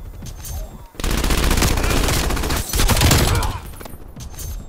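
Rapid gunfire bursts out loudly.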